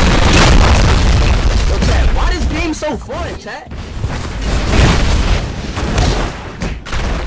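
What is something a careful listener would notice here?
Punches land with thuds in a game.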